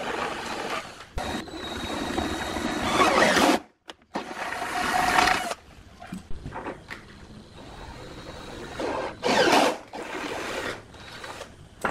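A cordless drill whirs in short bursts, driving in screws.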